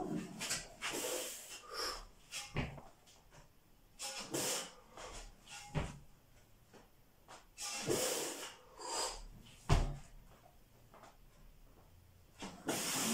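A man exhales hard and grunts with each heavy lift.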